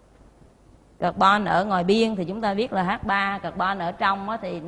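A middle-aged woman speaks clearly into a close microphone, explaining.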